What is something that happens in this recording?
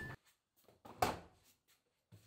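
A washing machine door clicks open.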